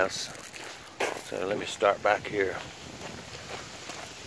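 Footsteps crunch over dry leaves and gravel.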